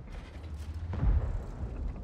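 A tank gun fires with a heavy boom.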